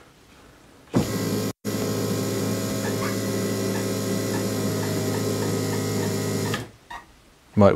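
A machine hums steadily, then stops.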